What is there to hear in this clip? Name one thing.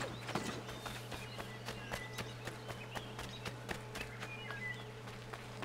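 Footsteps run quickly over a dirt path.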